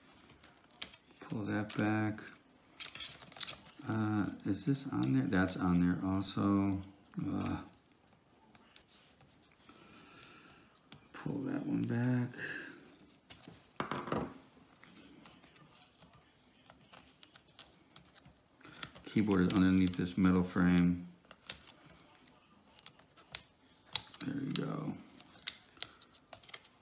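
A small screwdriver taps and clicks against metal parts.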